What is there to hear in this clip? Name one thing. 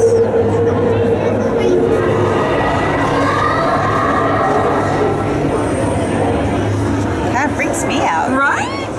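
A crowd of people chatters loudly nearby.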